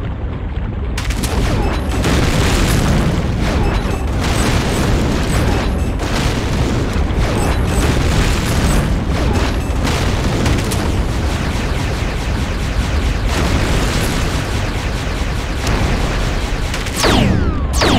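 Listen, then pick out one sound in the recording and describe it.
Explosions boom and roar in rapid succession.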